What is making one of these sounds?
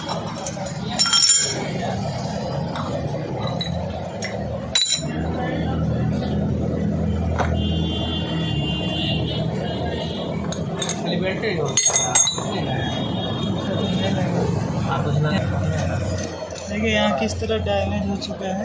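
Metal parts clink and clatter as they are handled.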